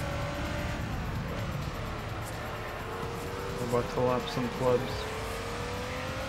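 A racing car engine drones steadily, its pitch dipping and then rising again.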